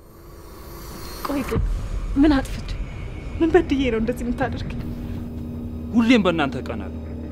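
A young woman speaks in a troubled voice, close by.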